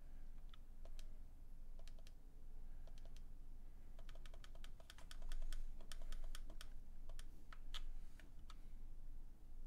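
Short electronic blips sound as game menu choices are made.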